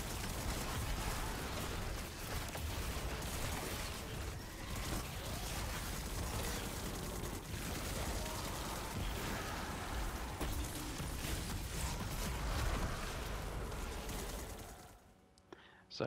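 Rapid gunfire and explosions crackle and boom in a video game battle.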